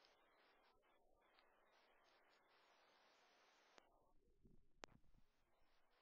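A small mouse nibbles a seed with faint crunching.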